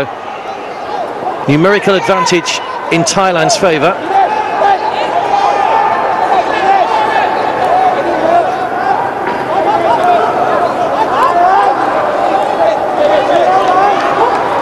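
A crowd chatters and cheers in large stands.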